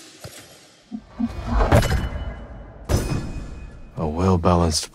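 A deep whoosh and chime sound as a weapon unlocks.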